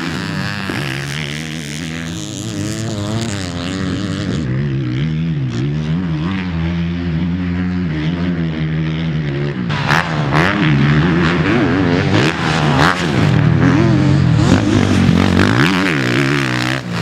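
A motorcycle engine revs loudly up and down close by.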